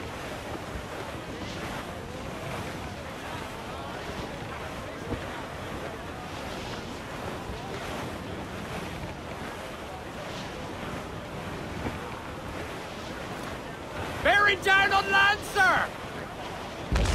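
Wind rushes through a ship's sails and rigging.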